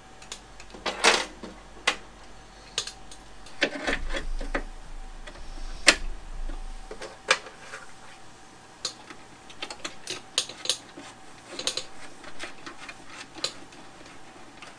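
Metal parts clink and knock.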